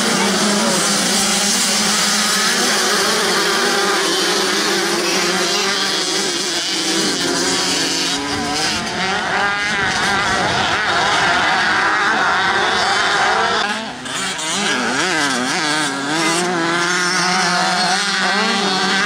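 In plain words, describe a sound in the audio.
Dirt bike engines rev loudly and whine up and down.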